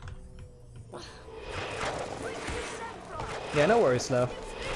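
A magic spell whooshes and sparkles in a video game.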